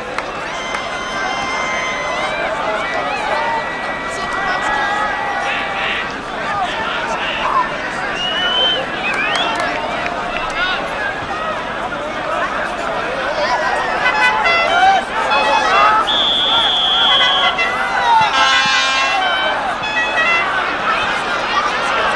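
A large outdoor crowd chatters and shouts loudly.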